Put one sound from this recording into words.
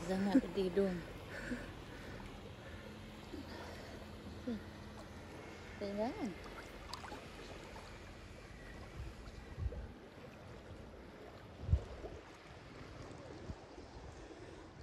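Small waves lap and splash gently close by.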